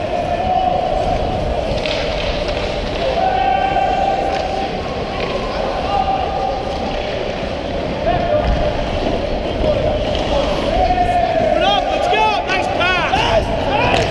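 Ice skates scrape and carve across ice in a large echoing hall.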